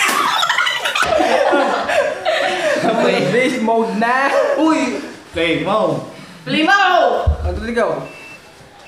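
A group of young men and a man burst out laughing close by.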